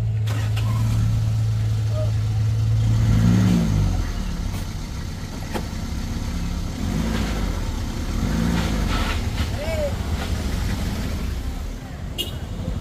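A small truck engine strains and revs loudly up close.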